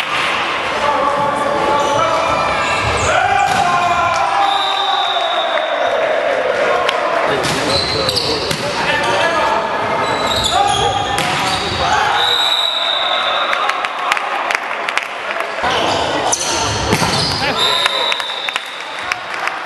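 A volleyball is struck with loud smacks that echo around a large hall.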